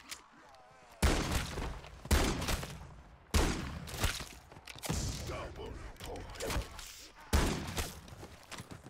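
A shotgun fires loud blasts.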